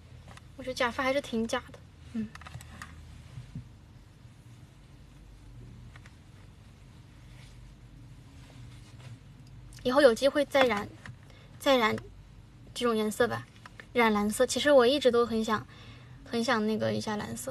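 A young woman speaks softly and casually close to a microphone.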